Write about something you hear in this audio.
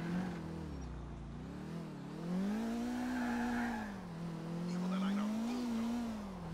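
A car engine hums steadily, rising and falling in pitch.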